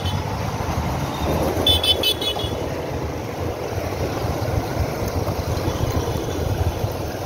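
Wind rushes past while riding outdoors.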